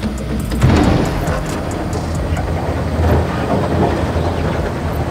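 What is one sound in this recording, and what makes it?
An excavator bucket scrapes and digs into dirt.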